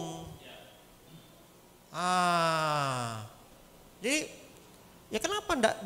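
A man speaks into a microphone to a room, with pauses.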